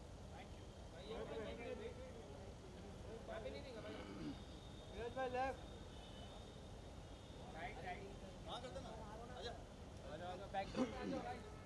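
Men call out and shout nearby.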